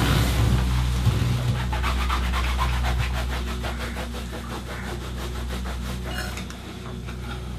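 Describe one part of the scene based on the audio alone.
Crusty bread crackles as a man tears it apart.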